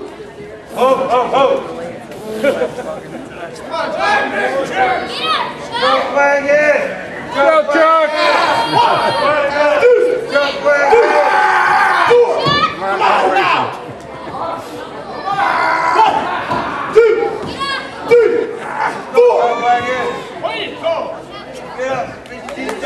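A small crowd of adult spectators shouts and cheers close by in an echoing hall.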